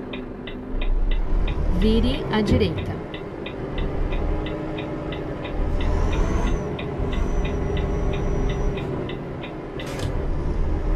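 A turn signal ticks at an even pace.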